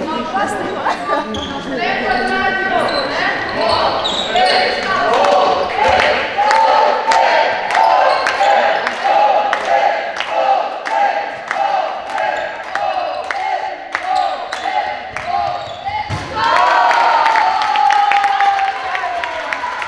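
Spectators cheer and chant from the side.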